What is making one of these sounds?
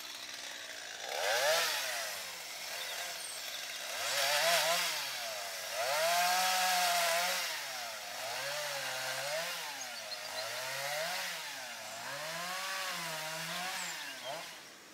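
A chainsaw revs up and down repeatedly.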